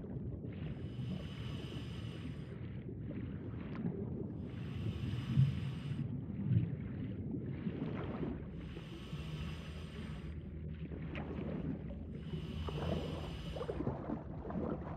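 A diver breathes out through a regulator in slow, regular bursts of bubbling.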